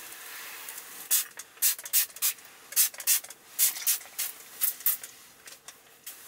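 A plastic wrapper crinkles and rustles close by.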